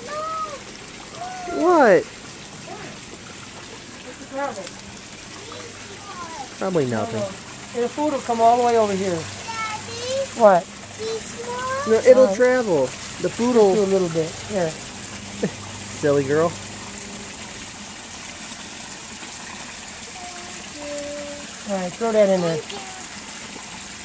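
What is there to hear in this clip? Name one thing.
A young girl talks in a high, lively voice close by.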